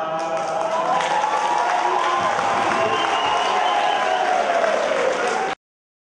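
A group of men sing together loudly.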